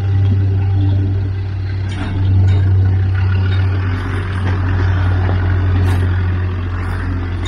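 Tyres crunch and scrape on rock.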